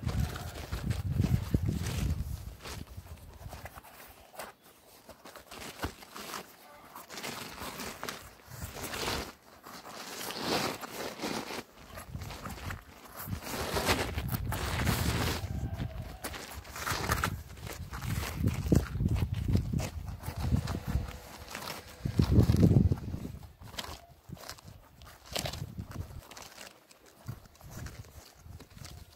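Rubber scrapes and creaks as hands work a tyre and inner tube.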